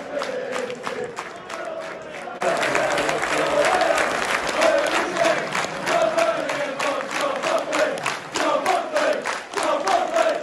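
A large stadium crowd sings and chants loudly outdoors.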